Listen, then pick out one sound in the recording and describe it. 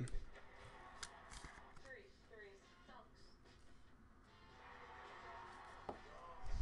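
Plastic card cases click and rustle in hands.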